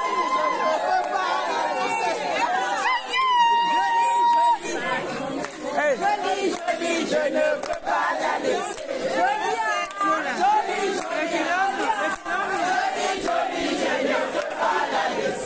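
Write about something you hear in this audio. A crowd cheers and shouts with excitement.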